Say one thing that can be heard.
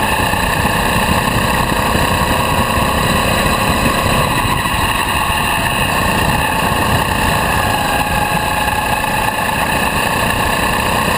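A small kart engine whines loudly and steadily close by.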